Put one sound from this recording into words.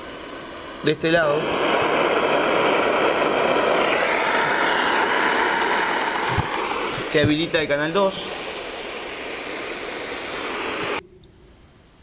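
A handheld electronic device hisses loudly with static.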